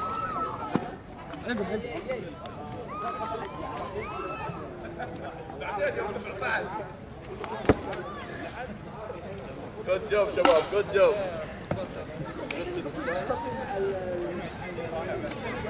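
Several young men talk and shout excitedly nearby, outdoors.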